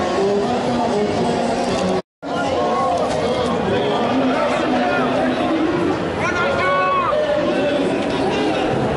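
A crowd of marchers chatters and calls out outdoors.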